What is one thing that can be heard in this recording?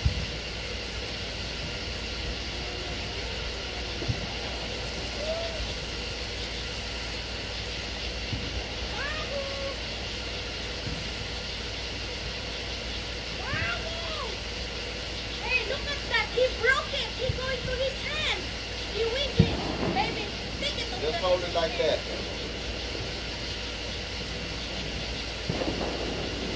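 Sparklers fizz and crackle.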